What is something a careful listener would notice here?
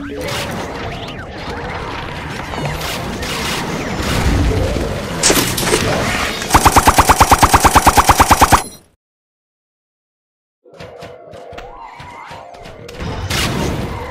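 Rapid cartoon popping and splatting sounds play from a game.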